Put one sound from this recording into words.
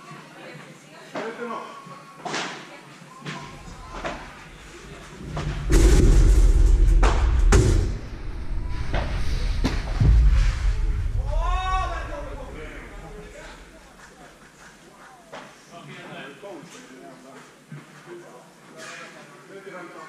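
A padel ball pops off rackets in a large echoing hall.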